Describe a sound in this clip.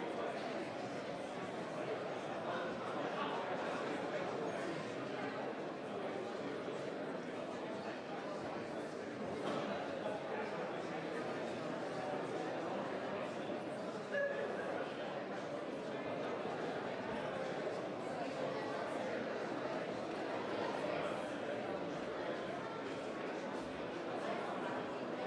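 A crowd of men and women murmur and chatter quietly in a large echoing hall.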